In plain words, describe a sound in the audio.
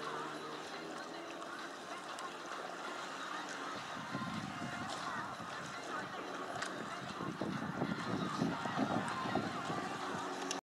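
Choppy waves splash on the water.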